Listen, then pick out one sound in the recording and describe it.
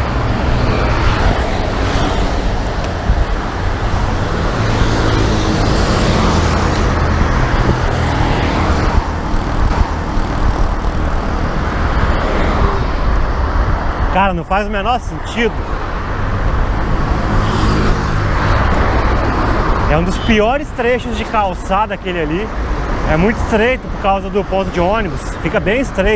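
Wind rushes loudly past while riding a bicycle outdoors.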